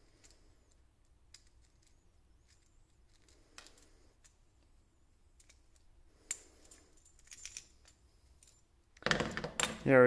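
A screwdriver turns a small screw with faint metallic clicks.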